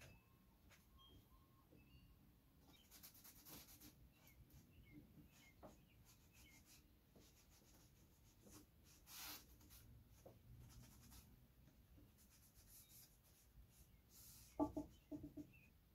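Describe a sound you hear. Hands rub and tap a wooden frame on a table.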